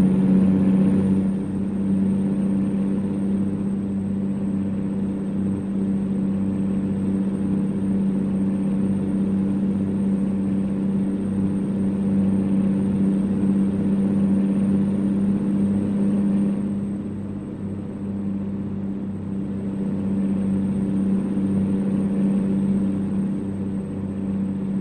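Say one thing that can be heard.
A truck engine hums steadily with a low drone, easing slightly and rising again.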